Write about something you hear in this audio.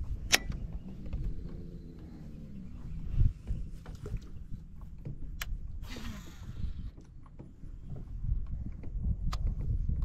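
A fishing reel clicks and whirs as its handle is turned.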